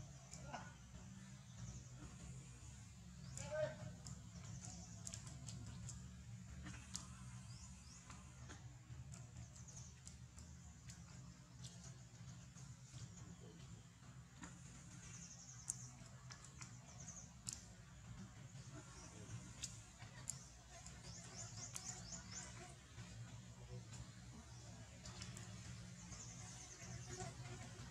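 Young monkeys scuffle and scramble over stones and dry leaves.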